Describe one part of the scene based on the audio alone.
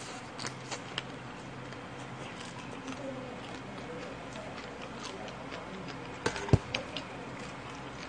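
Chopsticks and dishes clink and knock on a table.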